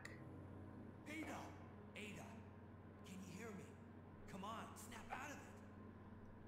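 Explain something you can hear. A young man calls out urgently.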